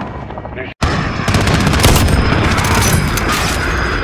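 A sniper rifle fires a single shot.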